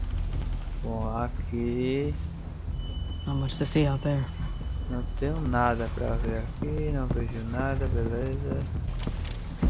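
A young man speaks quietly into a microphone.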